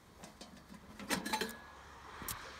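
Metal parts clink and rattle against each other.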